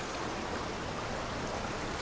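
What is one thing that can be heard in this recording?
Water rushes along a stream.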